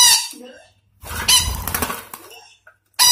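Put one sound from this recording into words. A parrot flaps its wings in a quick flutter.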